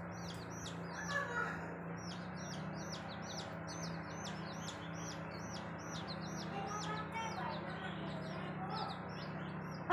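A hen clucks softly.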